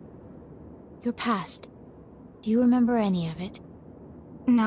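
A young woman asks a question calmly.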